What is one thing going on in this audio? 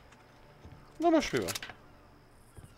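A rifle is picked up with a short metallic clatter.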